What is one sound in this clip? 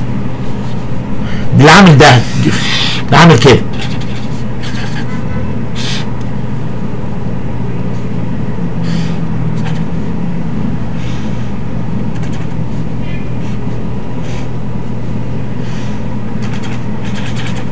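A marker squeaks across paper.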